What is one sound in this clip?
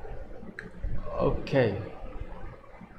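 A young man exclaims briefly close to the microphone.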